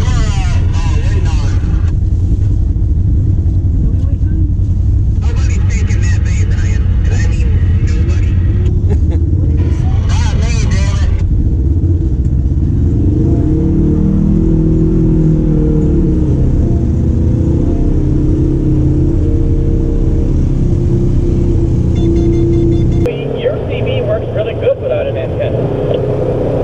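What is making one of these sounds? A vehicle engine rumbles steadily up close.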